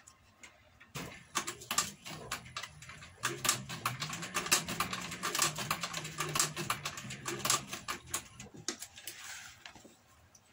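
A sewing machine hums and thumps as it stitches through thick leather.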